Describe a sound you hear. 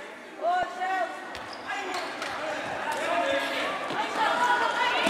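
Young women shout to one another in an echoing indoor hall.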